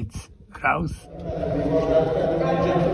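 A group of men and women talk together nearby, in a hollow, echoing space.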